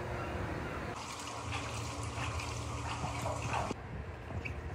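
Water splashes as hands wash a metal part.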